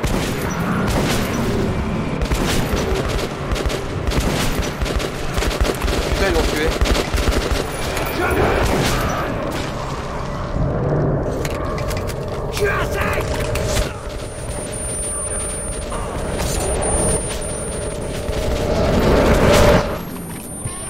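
Rapid gunfire bursts loudly.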